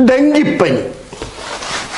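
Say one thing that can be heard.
A cloth wipes across a chalkboard.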